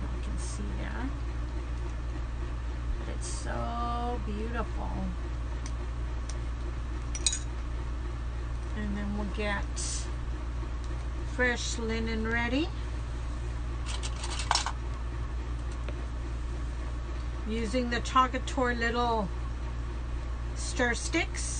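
A woman talks calmly close by, in short phrases with pauses.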